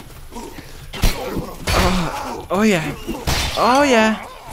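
Swords clash with sharp metallic hits.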